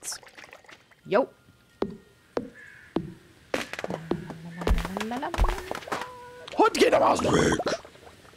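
An axe chops into a tree with sharp, repeated knocks.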